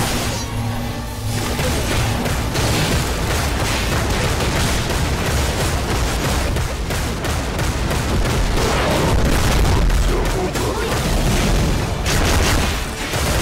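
Sword slashes and magic blasts clash rapidly in a game battle.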